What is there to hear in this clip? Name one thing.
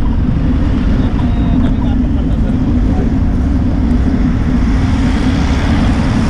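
A bus engine hums close by as it passes.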